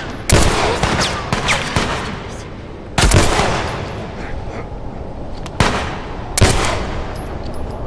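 Gunshots bang loudly and echo through a large hall.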